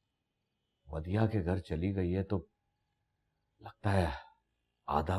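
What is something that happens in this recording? A middle-aged man speaks tensely, close by.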